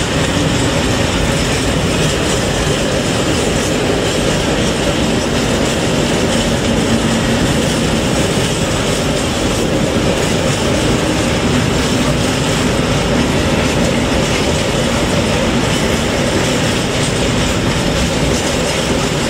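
A long freight train rumbles past close by, its wheels clattering steadily on the rails.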